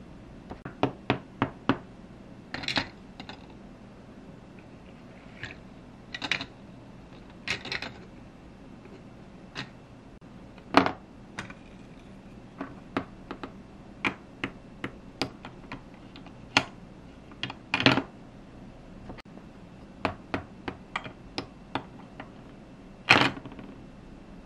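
Small plastic toys click and tap against a plastic playset.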